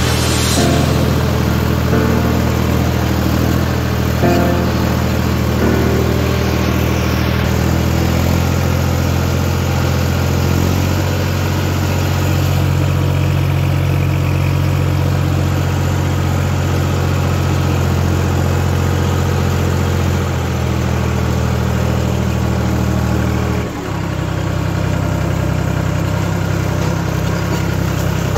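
A tractor engine drones loudly and steadily close by.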